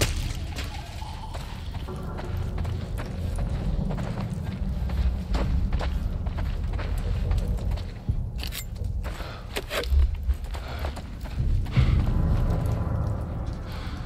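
Footsteps crunch over debris and broken glass.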